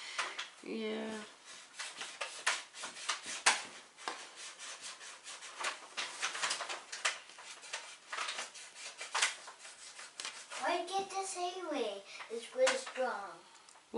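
Small objects click and tap as hands work on fabric.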